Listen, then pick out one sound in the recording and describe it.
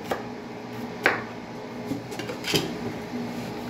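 A knife chops through onion and knocks against a wooden board.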